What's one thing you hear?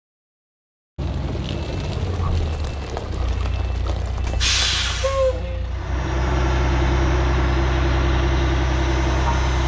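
A large diesel truck engine idles with a steady low rumble.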